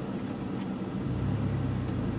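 A car engine revs up as the car pulls forward.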